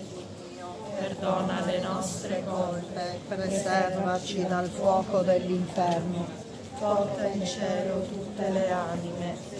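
A group of women sings a slow hymn together close by.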